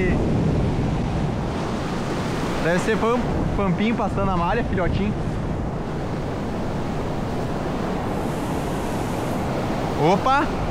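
Foamy water churns and rushes steadily behind a moving boat.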